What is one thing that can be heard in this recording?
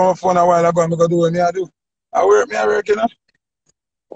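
A young man speaks casually close to a phone microphone.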